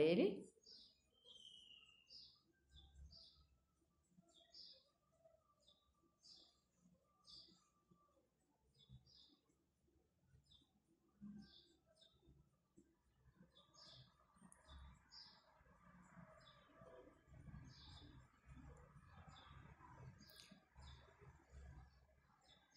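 A woman talks calmly and quietly, close by.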